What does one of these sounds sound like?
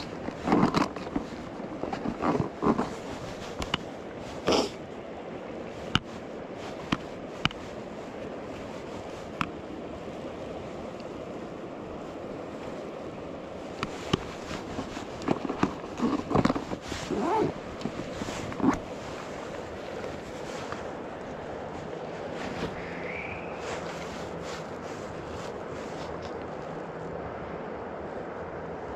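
A shallow stream trickles steadily outdoors.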